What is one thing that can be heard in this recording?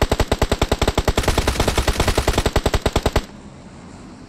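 A rifle fires a rapid automatic burst, loud and close.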